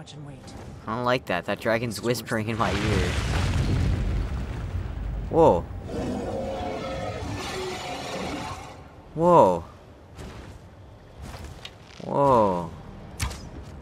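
A dragon roars loudly several times.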